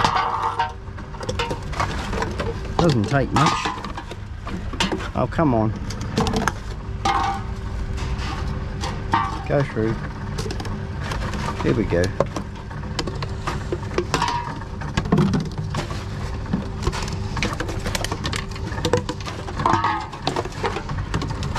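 A machine whirs as it takes in bottles and cans.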